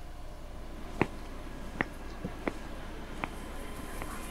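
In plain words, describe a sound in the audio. Slow footsteps walk on a hard, gritty floor.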